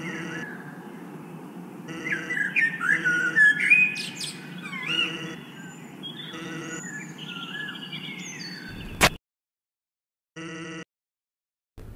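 Short electronic blips chirp in quick bursts as game text types out.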